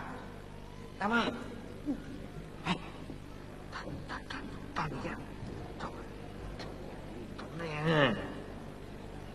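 A man speaks in short bursts on stage.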